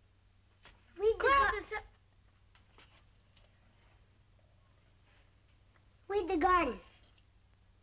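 A boy speaks with excitement.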